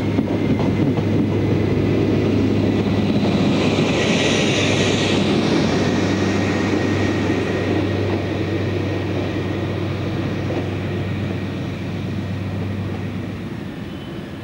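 A diesel engine rumbles loudly as a train passes close by.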